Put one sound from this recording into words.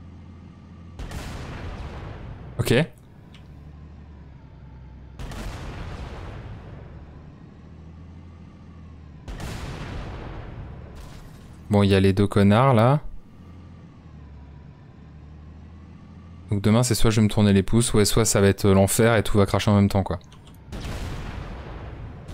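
Tank cannon shots boom with loud blasts.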